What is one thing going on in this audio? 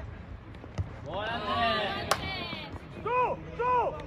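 Young men shout to each other outdoors across a sports field.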